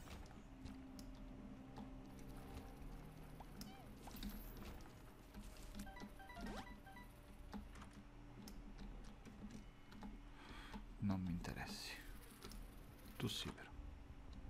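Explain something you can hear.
Video game tears pop and splat in quick bursts.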